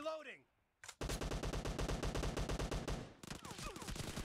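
An assault rifle fires in rapid automatic bursts.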